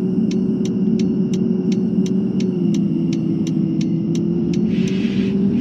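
A turn signal ticks at a steady quick pace, then stops.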